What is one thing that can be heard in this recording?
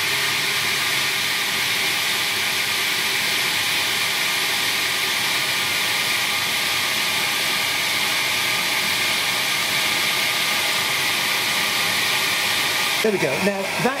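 A laser engraver's fan whirs with a steady hiss, then stops.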